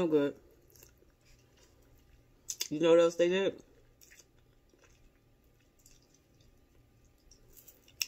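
A woman chews food with faint crunching.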